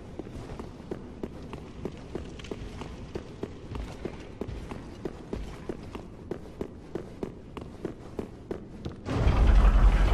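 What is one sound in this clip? Armored footsteps clank quickly on stone.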